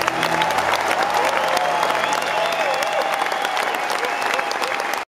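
A drummer plays a drum kit with crashing cymbals.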